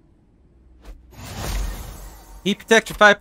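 A bright magical shimmer swells up.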